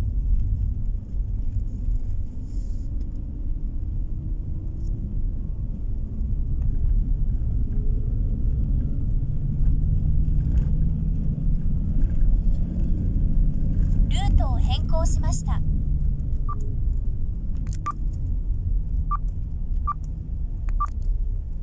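A vehicle's engine hums low and steady.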